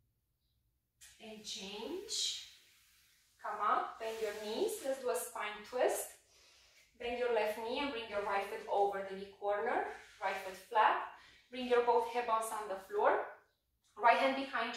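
A woman speaks calmly and clearly into a close microphone, giving instructions.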